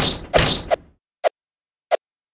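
A short whooshing swipe sounds as a sword swings.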